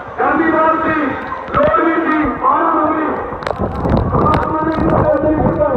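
A large crowd chants loudly together outdoors.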